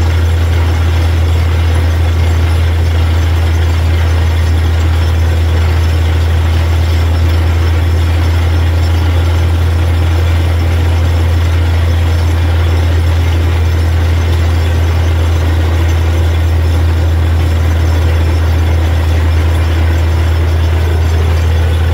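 A drilling rig's engine roars loudly and steadily close by.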